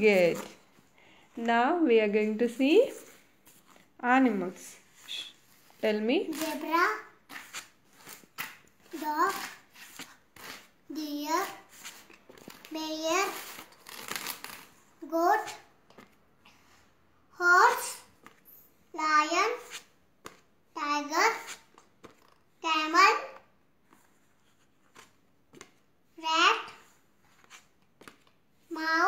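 A small boy says single words aloud close by, one at a time.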